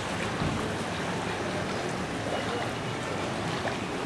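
Footsteps slosh through shallow water.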